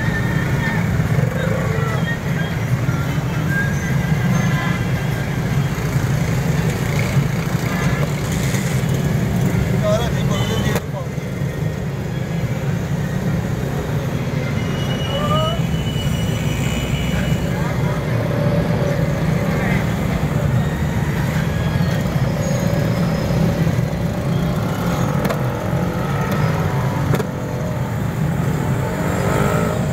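A busy street hums steadily in the background.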